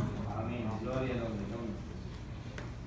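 A man speaks through a microphone in a large echoing hall.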